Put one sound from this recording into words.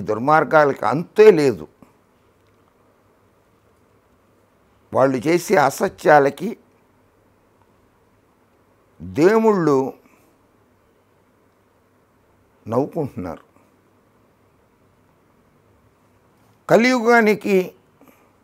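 An older man speaks calmly and clearly into a close microphone, in short bursts with pauses.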